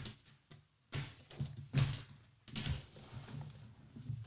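A cardboard box scrapes and rustles as it is slid away.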